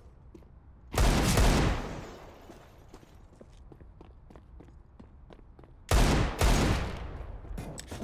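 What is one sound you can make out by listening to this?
Pistol shots fire in quick bursts, loud and echoing.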